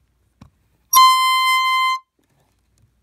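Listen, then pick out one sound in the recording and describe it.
A toy horn honks once with a steady tone.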